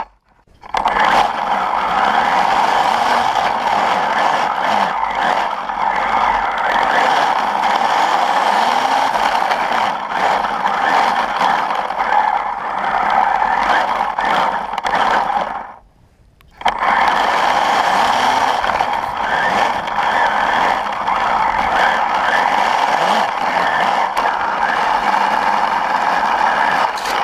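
A small engine whines loudly close by.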